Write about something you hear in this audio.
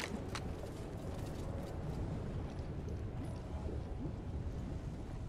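Molten lava rumbles and churns with a low, steady roar.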